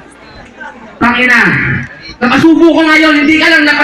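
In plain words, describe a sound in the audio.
A young man sings loudly through a microphone over loudspeakers.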